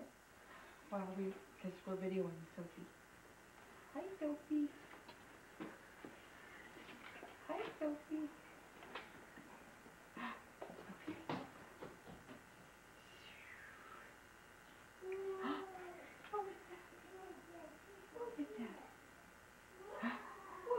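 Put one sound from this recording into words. A woman talks softly and playfully to a baby close by.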